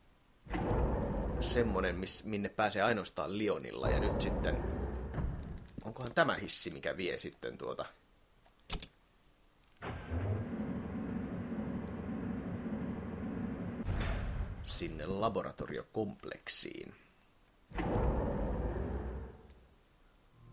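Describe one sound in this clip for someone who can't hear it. Heavy metal elevator doors slide open with a rumble.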